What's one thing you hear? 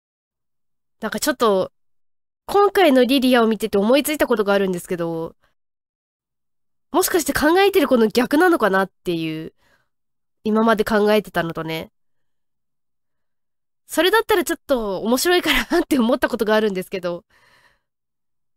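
A young woman talks animatedly into a microphone, in short bursts with pauses.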